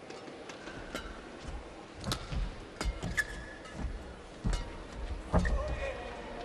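Rackets strike a shuttlecock sharply in a rally.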